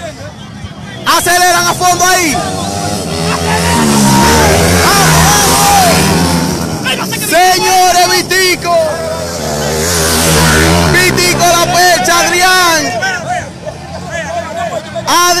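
Young men shout and cheer excitedly nearby, outdoors.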